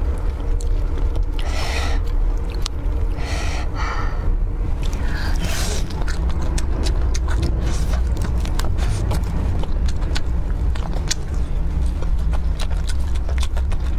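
Crispy fried chicken crackles as fingers tear it apart.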